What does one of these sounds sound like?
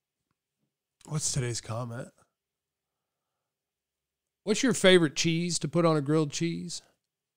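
A man speaks close into a microphone with animation, in two short bursts.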